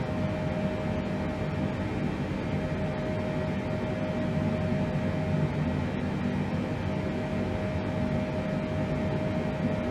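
Aircraft engines drone steadily with a low roar and a constant hum.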